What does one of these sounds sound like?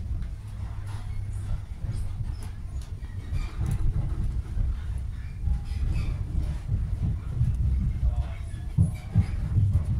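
Train wheels click and rattle over the rails.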